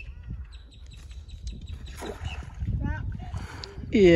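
A cast net splashes into water.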